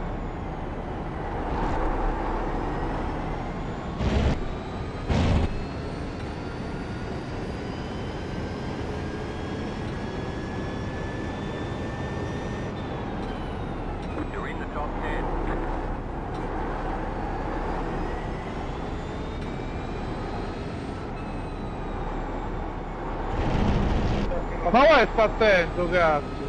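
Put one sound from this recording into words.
A racing car engine revs up and down through the gears.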